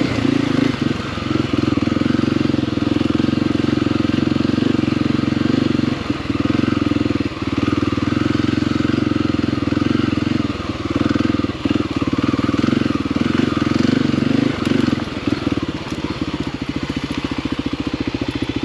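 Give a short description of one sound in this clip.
Tyres crunch over rocks and dirt.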